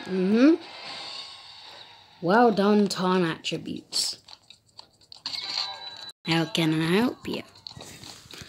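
A young boy speaks with animation close to a microphone.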